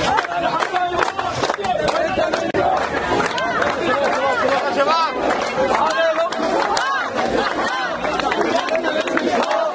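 A crowd of young men and women chants loudly outdoors.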